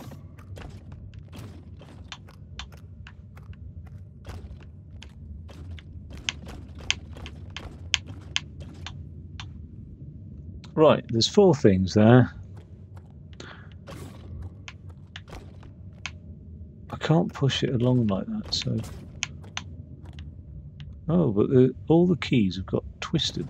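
A heavy mechanical gun clicks and ticks.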